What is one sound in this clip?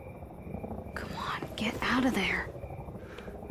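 A young woman speaks with urgency.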